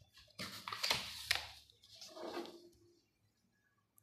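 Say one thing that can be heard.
A sheet of paper rustles and slides under a hand.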